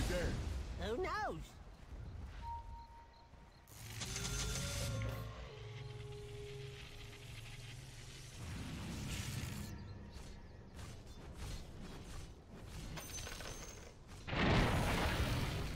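Video game sound effects chime and clash.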